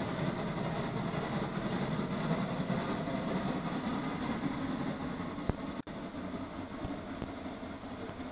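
A steam locomotive's wheels rumble and clank on the rails.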